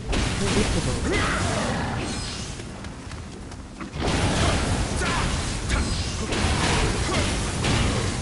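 Blades clash and strike in quick blows.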